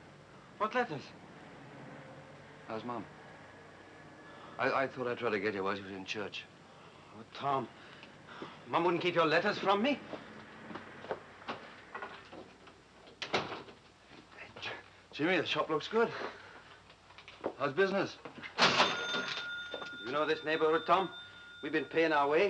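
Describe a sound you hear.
A man answers calmly, close by.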